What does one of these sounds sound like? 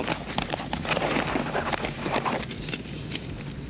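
Paper receipts rustle in a hand.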